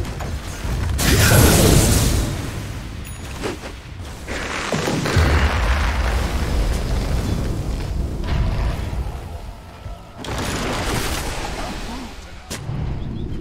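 Magic blasts whoosh and explode in a fast fight.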